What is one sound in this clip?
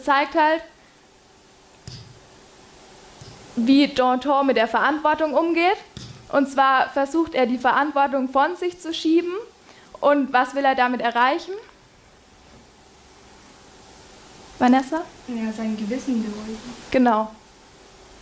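A young woman speaks calmly and clearly to a room.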